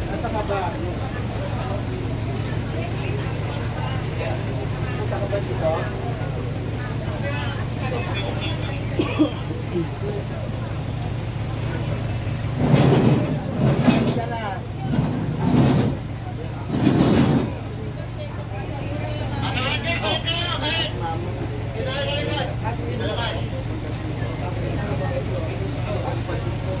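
Several men and women talk at once nearby, outdoors.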